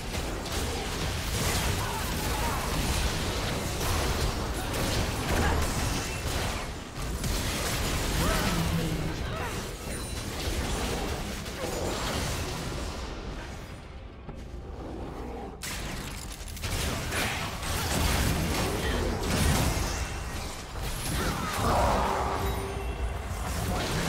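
Game hits and impacts crackle in quick bursts.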